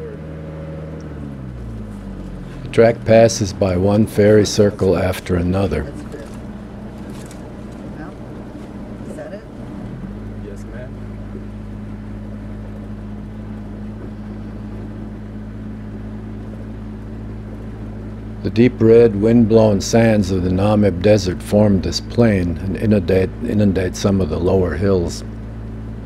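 Tyres rumble over a rough dirt track.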